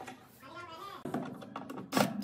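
A cordless drill drives a screw.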